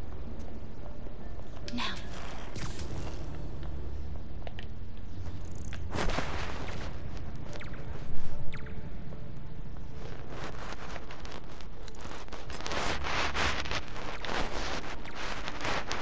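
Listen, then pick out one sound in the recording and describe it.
Soft footsteps pad slowly across a hard floor in a large echoing hall.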